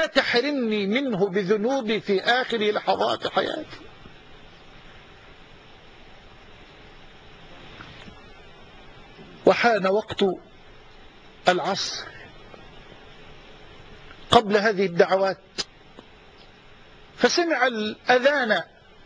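A man speaks with animation into a microphone, pausing often.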